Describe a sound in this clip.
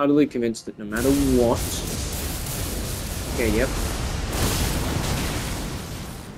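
Flames burst and roar loudly.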